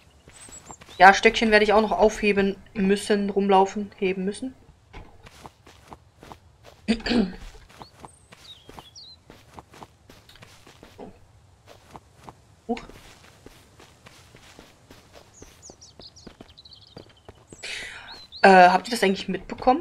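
A woman talks with animation into a microphone, close by.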